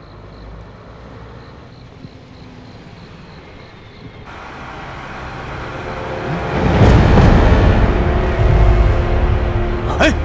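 A truck engine rumbles as it approaches and grows louder.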